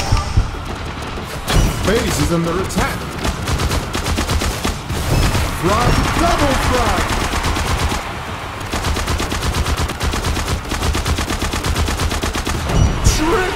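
Rapid gunfire from a video game rattles on steadily.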